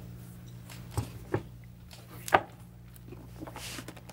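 A book thumps down on a table.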